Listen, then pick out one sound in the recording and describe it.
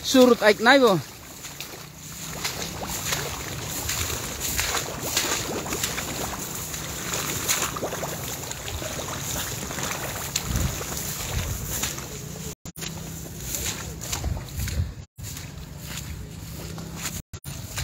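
Tall grass rustles and swishes with quick footsteps.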